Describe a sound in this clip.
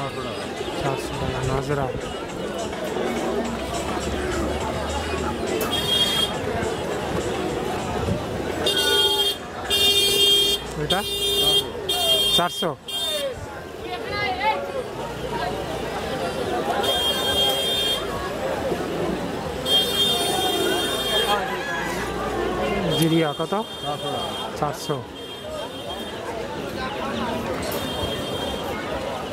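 Several men talk nearby in a busy outdoor crowd.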